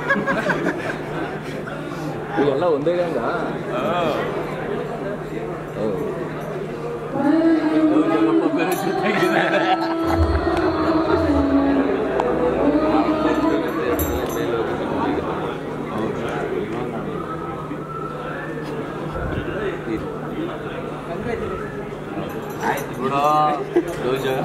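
A crowd chatters loudly in an echoing hall.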